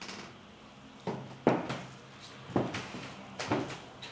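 A door opens and clicks.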